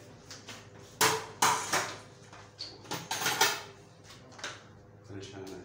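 Dishes clink and clatter at a sink.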